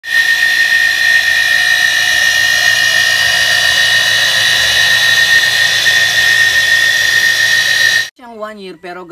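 An electric water pump runs with a steady high whine.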